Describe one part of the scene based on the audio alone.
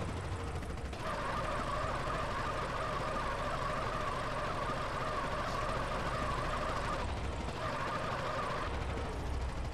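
Tyres squeal and skid on pavement.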